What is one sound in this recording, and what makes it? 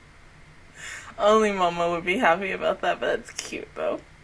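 A young woman talks happily into a close microphone.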